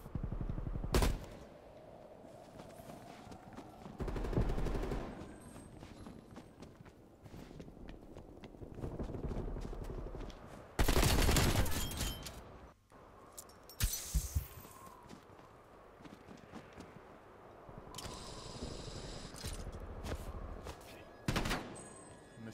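Gunshots crack sharply in a video game.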